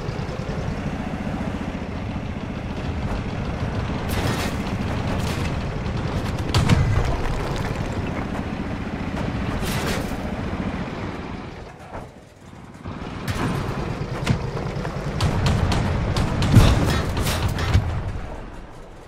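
A heavy tank engine rumbles as tracks clank along.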